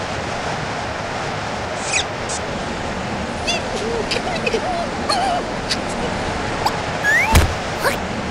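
A cartoon creature groans and mumbles sleepily up close.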